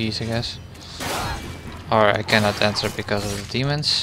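A blade slashes and strikes in a fight.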